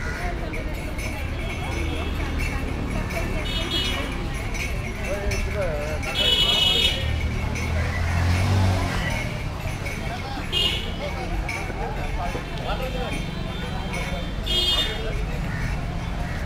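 Men and women chatter outdoors at a distance.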